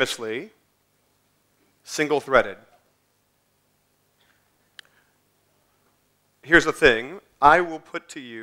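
A man speaks thoughtfully through a microphone, pausing between phrases.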